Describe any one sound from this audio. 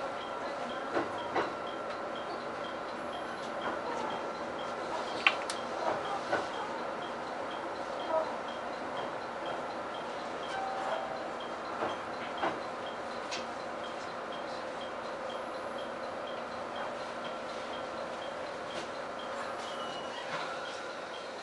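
Train wheels clack and knock over rail joints.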